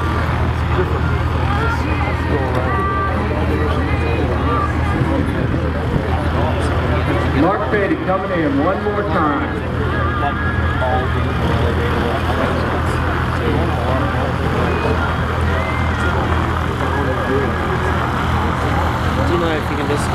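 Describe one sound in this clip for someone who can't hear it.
A small propeller plane drones steadily overhead as it comes in low.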